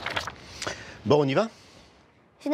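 A man asks a question calmly, close by.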